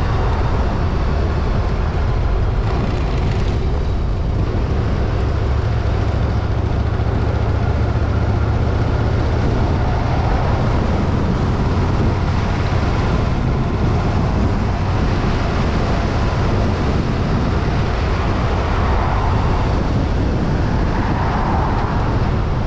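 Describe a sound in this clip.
A car drives steadily along a road, with road and wind noise rumbling low.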